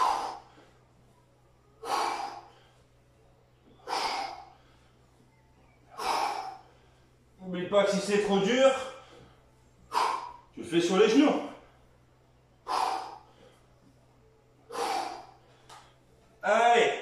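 A man breathes out sharply in short, regular bursts.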